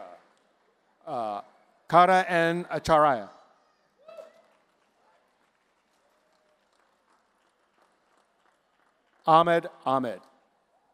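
A woman speaks clearly into a microphone, heard over loudspeakers in a large hall.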